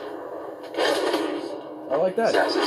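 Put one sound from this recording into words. Fight blows and crashes ring out through a loudspeaker.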